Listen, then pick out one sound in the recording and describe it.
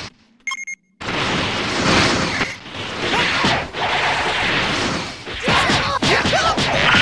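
Fighters clash with quick, sharp hits.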